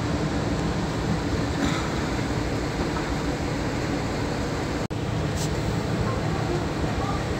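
Waves churn and rush against a ship's hull with a steady roar.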